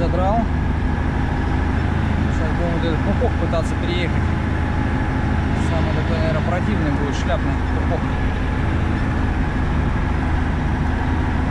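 A heavy truck engine drones steadily from inside the cab.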